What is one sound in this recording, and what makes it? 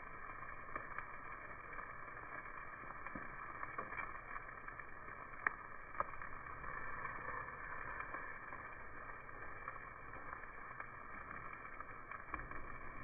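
Metal tongs clink against a grill grate.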